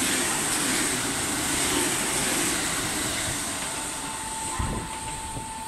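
A train rushes past close by with a loud rushing rumble that fades away.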